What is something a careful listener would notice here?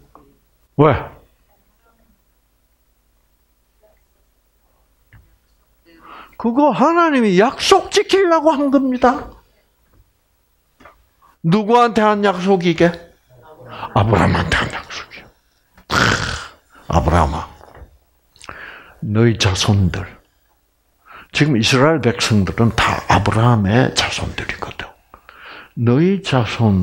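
An elderly man lectures with animation through a headset microphone, pausing between phrases.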